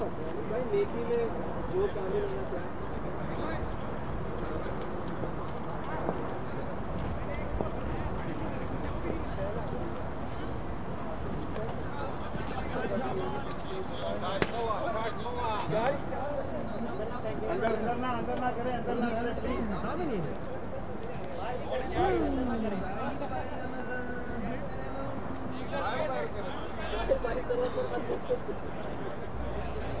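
Several men talk and call out across an open field outdoors.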